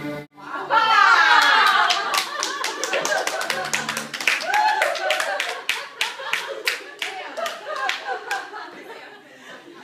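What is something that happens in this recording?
Several people clap their hands in a steady rhythm.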